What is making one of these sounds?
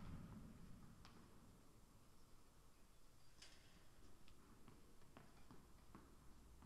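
A tennis ball bounces on the court.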